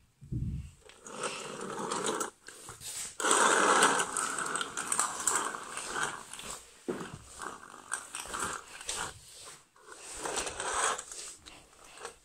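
A plastic toy car rolls across a wooden floor.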